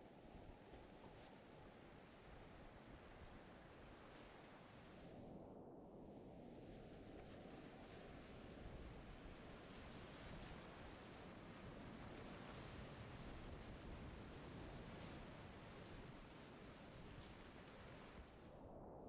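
Whitewater rushes and roars loudly all around, close by.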